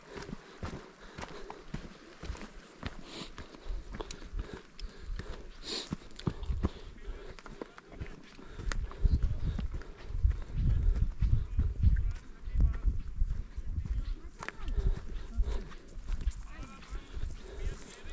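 Wind blows outdoors, gusting against the microphone.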